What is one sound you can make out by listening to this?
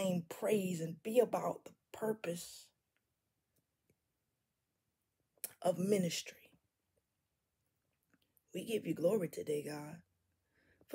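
A woman speaks expressively and close to a microphone, with pauses between phrases.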